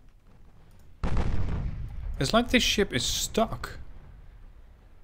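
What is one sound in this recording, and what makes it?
Heavy ship guns fire with a deep boom.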